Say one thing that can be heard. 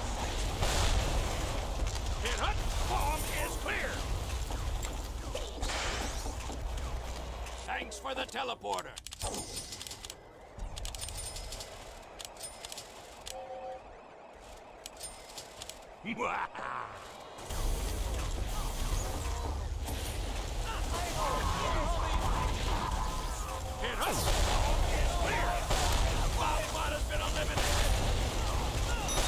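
Gunfire and explosions crackle and boom in a fast shootout.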